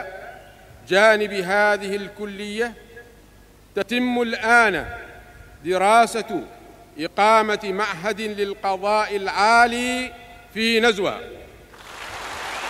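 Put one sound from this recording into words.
An elderly man reads out a speech into microphones.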